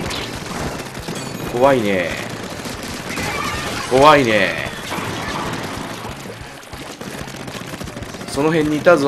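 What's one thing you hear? Paint splatters and squelches in a video game.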